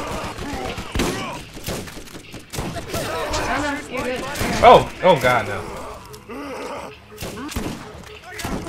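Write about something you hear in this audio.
Gunfire from a video game crackles in quick bursts.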